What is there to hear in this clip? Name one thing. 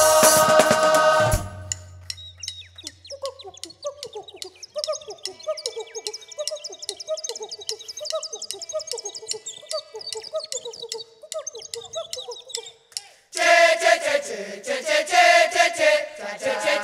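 Drums beat in a steady rhythm.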